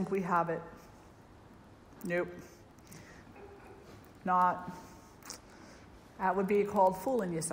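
An elderly woman speaks calmly in short phrases with pauses.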